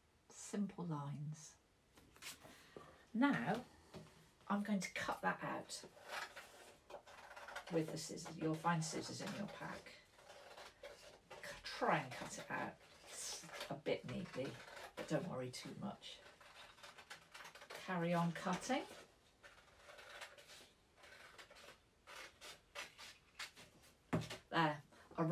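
A middle-aged woman talks calmly and warmly, close by.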